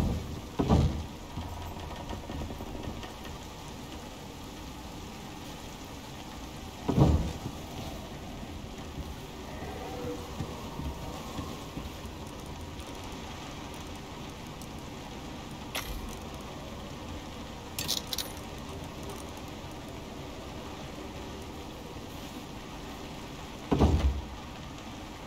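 Heavy wooden panels thud into place a few times.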